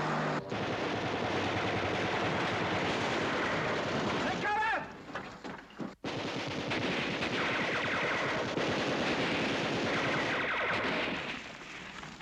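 Explosions boom and roar loudly.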